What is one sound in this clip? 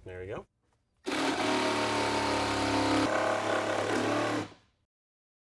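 A jigsaw buzzes loudly as it cuts through wood.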